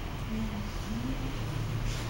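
A hair dryer blows with a steady whirr.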